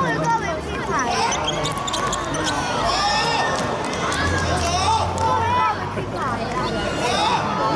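A ball is kicked on a hard court.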